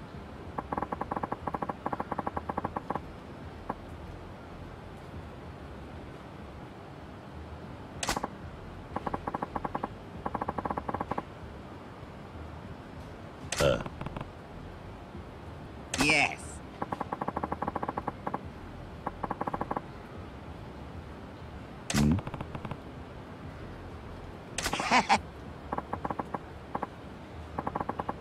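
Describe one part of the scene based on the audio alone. Rapid soft electronic ticks chatter in short bursts.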